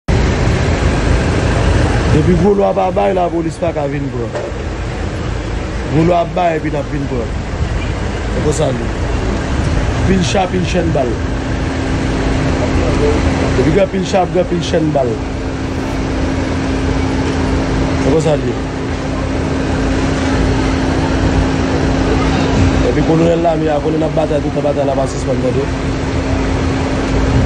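Motorcycle engines hum and traffic rumbles along a road.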